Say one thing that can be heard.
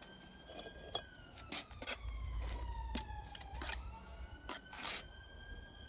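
A trowel scrapes wet mortar.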